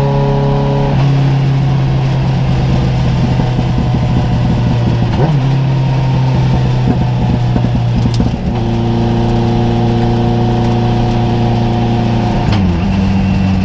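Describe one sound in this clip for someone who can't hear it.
A race car engine drops in pitch as gears shift.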